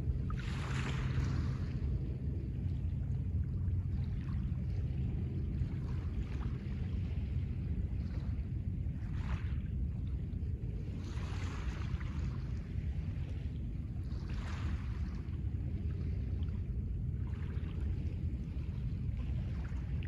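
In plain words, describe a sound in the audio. Small waves wash gently over a pebble shore every few seconds.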